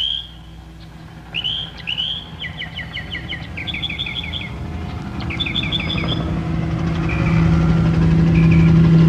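A helicopter drones overhead, growing louder as it approaches.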